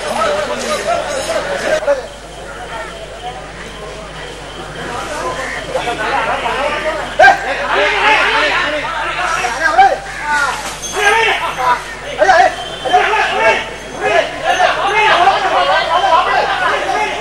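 Men shout at an elephant outdoors.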